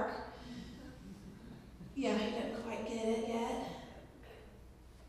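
A woman sings through a loudspeaker, echoing in a large hall.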